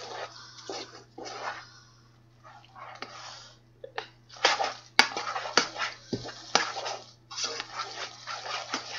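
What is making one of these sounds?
A spoon stirs and scrapes thick food in a metal pot.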